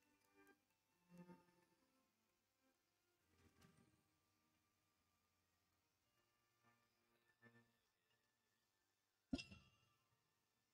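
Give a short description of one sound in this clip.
Soft game music chimes and tones play.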